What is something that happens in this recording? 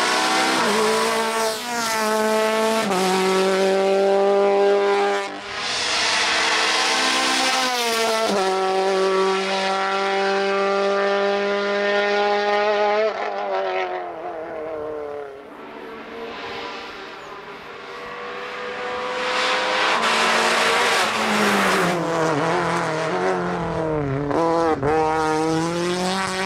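Rally car engines roar loudly at high revs, shifting gears as the cars speed past.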